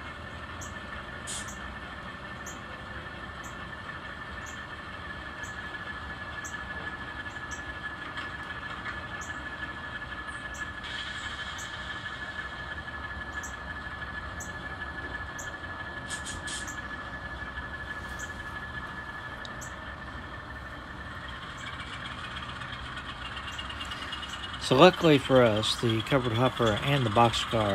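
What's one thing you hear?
A toy train engine hums steadily as it idles.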